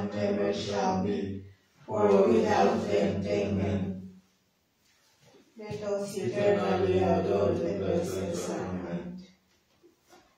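A man prays aloud in a steady, deep voice.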